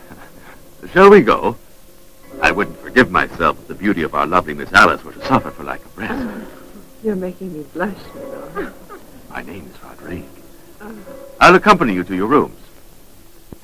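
A woman speaks in a conversation.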